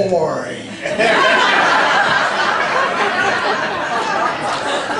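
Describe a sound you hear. An audience claps and cheers loudly.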